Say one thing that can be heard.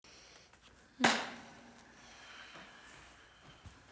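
A piano chord is struck and slowly fades.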